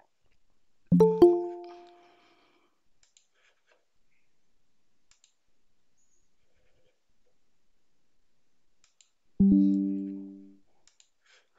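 A short notification chime sounds from an online call.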